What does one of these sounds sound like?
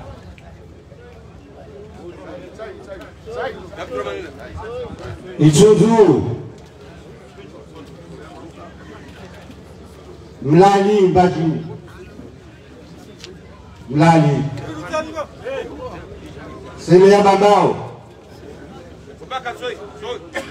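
An elderly man speaks through a loudspeaker outdoors, with pauses.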